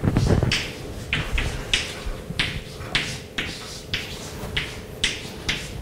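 Chalk taps and scrapes in short, quick strokes on a blackboard.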